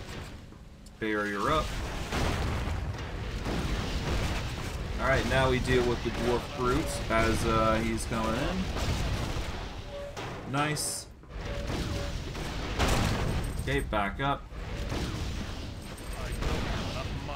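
Magic blasts whoosh and crackle during a fight.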